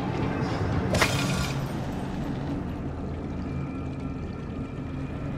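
A gear whirs and shimmers with a bright magical swoosh.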